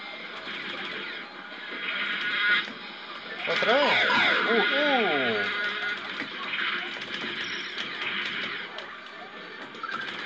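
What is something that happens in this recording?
An arcade game plays blaring music and sound effects through a speaker.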